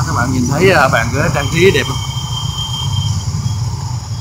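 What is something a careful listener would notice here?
Motorbike engines hum and pass along a street.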